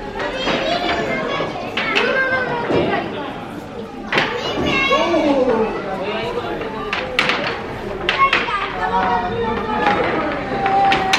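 Children shout and call out as they play.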